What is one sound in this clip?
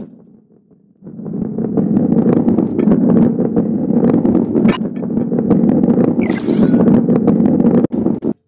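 A ball rolls fast along a wooden track with a steady rumble.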